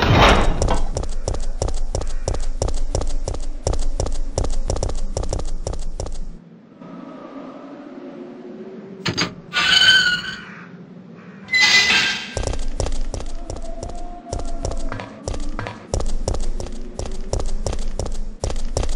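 Quick footsteps thud on hard ground.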